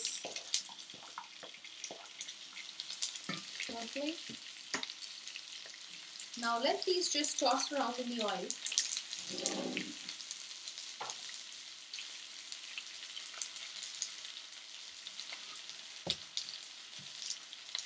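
Onions sizzle steadily in a hot pan.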